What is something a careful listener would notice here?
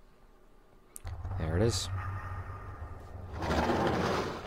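A metal gate rattles and rumbles as it slides open.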